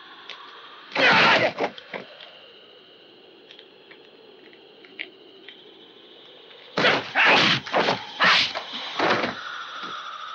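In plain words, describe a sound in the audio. Loud punches and blows land in a fight.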